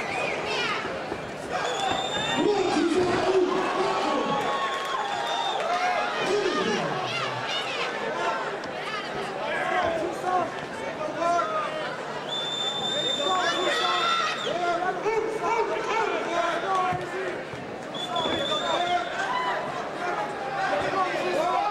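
A crowd cheers and shouts loudly in a large hall.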